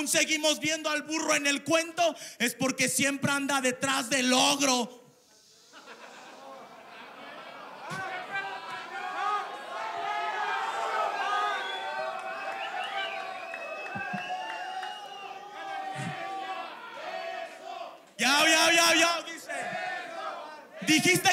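A young man raps loudly through a microphone.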